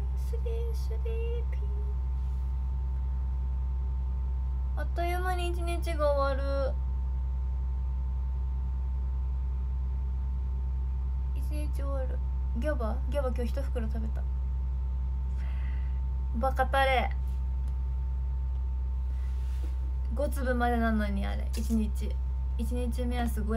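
A young woman speaks softly and close to a microphone, in short bursts with pauses.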